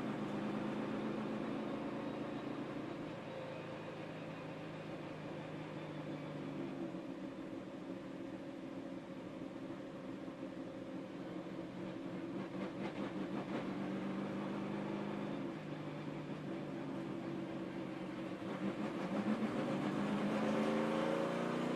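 A race car engine roars loudly at high revs, shifting pitch through the gears.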